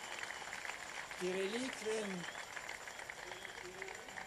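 A large crowd claps.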